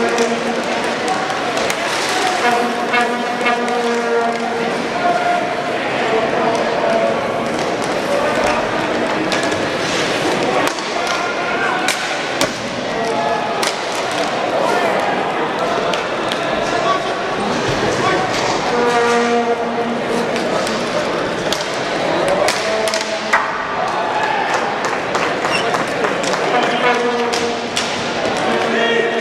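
Skate wheels roll and scrape across a hard floor.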